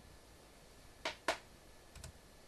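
Laptop keys click sharply a couple of times.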